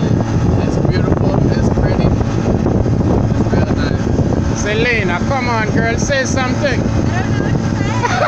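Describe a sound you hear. A motorboat engine drones as the boat speeds over water.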